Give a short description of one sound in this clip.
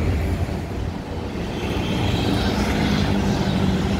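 Motorbikes ride by on a road.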